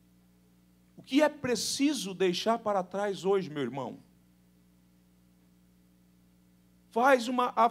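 A man speaks calmly and earnestly into a microphone, heard through a loudspeaker.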